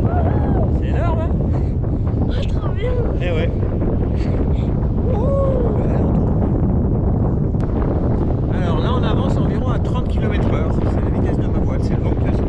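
Wind roars steadily against a microphone outdoors.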